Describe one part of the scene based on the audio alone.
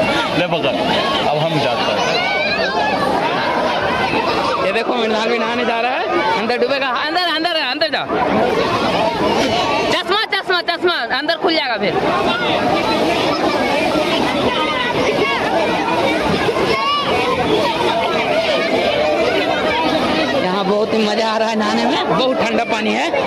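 A large crowd of people talk and shout outdoors.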